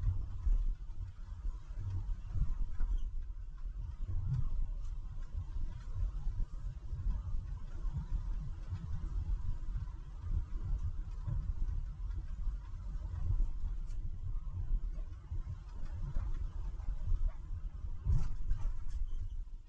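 A car drives along a road with a low, steady rumble.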